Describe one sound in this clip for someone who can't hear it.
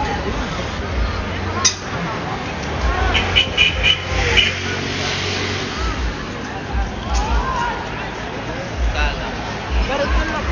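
A crowd murmurs and calls out outdoors.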